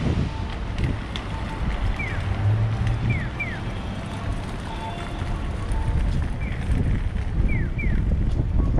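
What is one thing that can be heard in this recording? Footsteps tap on the pavement.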